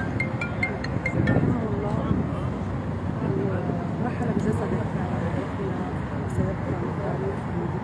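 A woman speaks into microphones held up close.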